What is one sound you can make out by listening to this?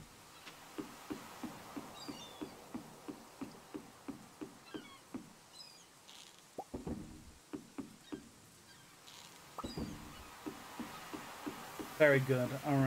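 Light footsteps tap steadily on wooden planks.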